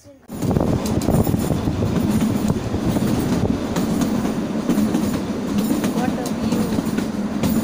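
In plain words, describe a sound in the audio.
Strong wind roars and gusts through trees outdoors.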